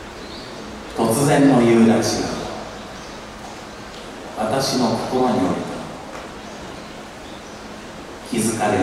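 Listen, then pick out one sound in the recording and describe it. A man speaks loudly through a microphone.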